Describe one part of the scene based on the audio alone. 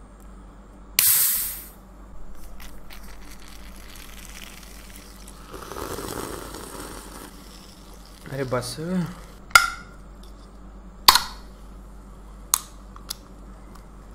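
Small plastic parts click and snap sharply in someone's hands.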